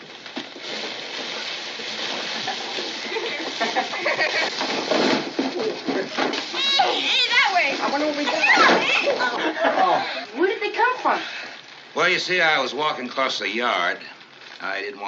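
A group of children chatter excitedly at once.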